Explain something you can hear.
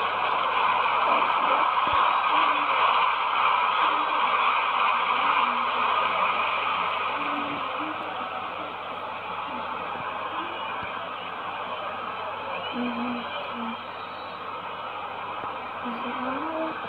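A stadium crowd cheers in a steady roar.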